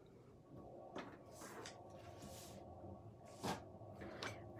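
A clear stamp block taps down on a tabletop.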